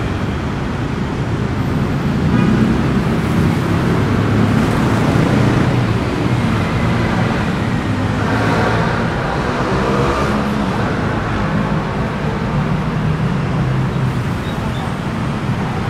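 Footsteps tap on a paved walkway.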